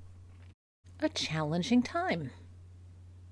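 An older woman speaks calmly into a microphone, heard as if over an online call.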